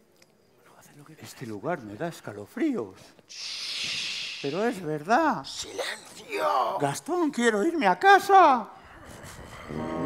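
Men speak and sing with animation through microphones on a stage.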